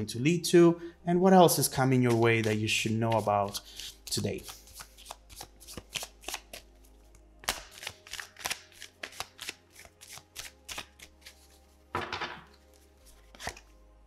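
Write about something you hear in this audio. Playing cards are shuffled with soft, rapid clicks.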